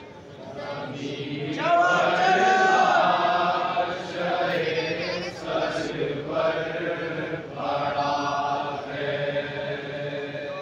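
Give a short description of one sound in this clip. A second man sings loudly into a microphone.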